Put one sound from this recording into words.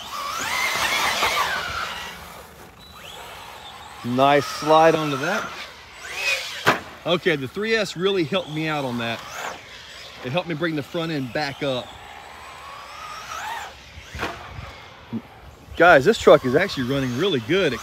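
A small electric motor whines as a toy car speeds over dirt.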